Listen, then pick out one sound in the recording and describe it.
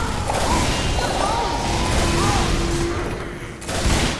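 An explosion bursts with a loud bang.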